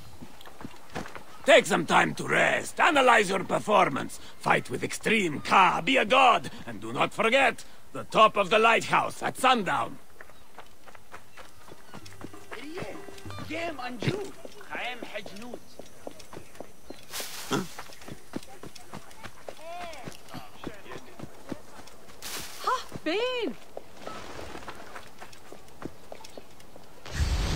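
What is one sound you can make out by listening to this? Footsteps run over sand and stone.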